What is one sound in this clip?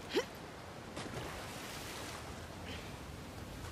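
A body splashes into deep water.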